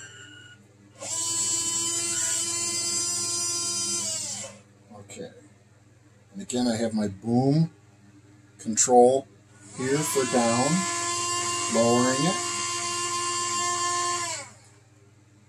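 A small electric motor whines steadily, starting and stopping.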